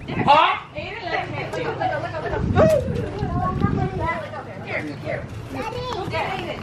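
Children shout and chatter excitedly nearby outdoors.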